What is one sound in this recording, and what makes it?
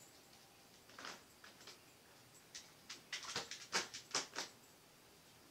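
A gloved hand taps lightly on a painted surface.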